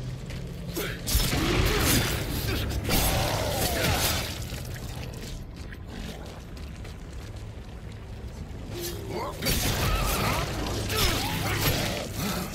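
Heavy stomps squelch wetly into flesh.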